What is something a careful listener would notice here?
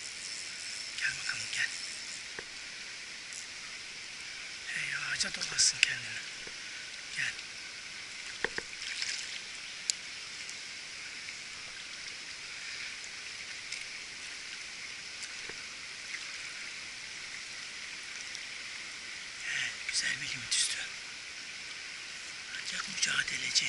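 A shallow stream flows and gurgles steadily.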